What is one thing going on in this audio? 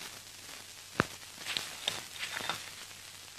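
Leaves and twigs rustle as a man crawls through undergrowth.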